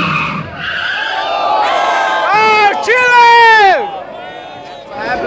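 Car tyres screech loudly on pavement.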